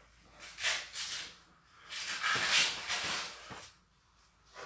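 Hands rustle and smooth out a cotton shirt.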